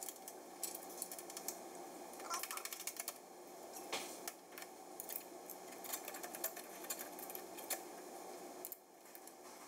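Small metal parts click and tap against a metal panel.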